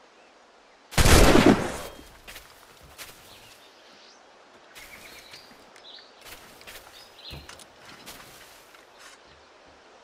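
Footsteps scrape and thud on a wooden roof.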